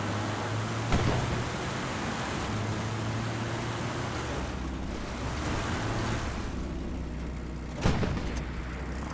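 Branches crack and snap against a tank's hull.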